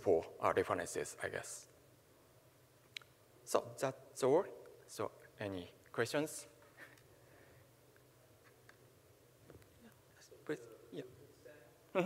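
A young man speaks through a microphone, pausing between phrases.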